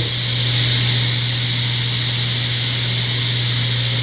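A table saw cuts through plywood.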